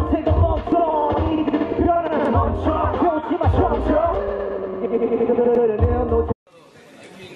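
Loud pop music with a heavy beat plays.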